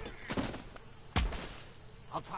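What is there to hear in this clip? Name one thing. A man hits the ground with a heavy thud.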